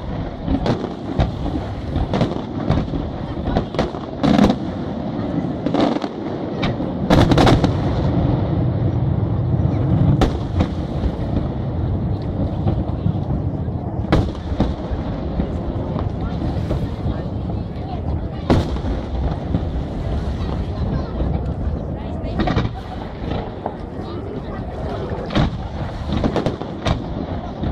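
Fireworks boom and bang loudly outdoors, echoing across open space.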